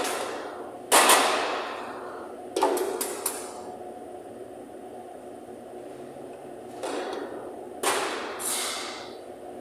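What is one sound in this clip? Metal tongs clink and tap against a metal plate.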